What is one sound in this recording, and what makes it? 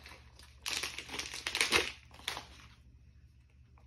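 Plastic packaging crinkles and rustles as it is torn open.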